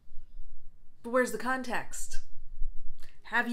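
A woman speaks calmly and expressively, close by.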